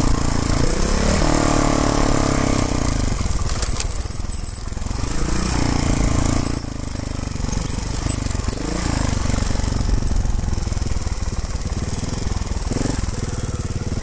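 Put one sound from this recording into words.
Dirt bike engines rev and whine up a hillside trail.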